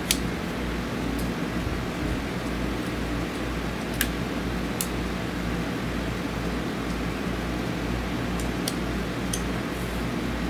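A metal tool clicks and taps in someone's hands.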